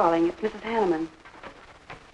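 A woman speaks into a phone close by.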